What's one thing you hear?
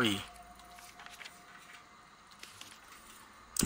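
Paper rustles softly as a letter is unfolded.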